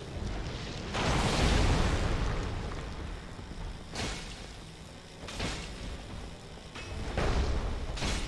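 Heavy weapon blows land with loud crashes and thuds.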